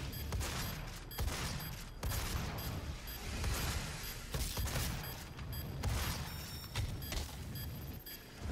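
A shotgun fires loud, booming blasts again and again.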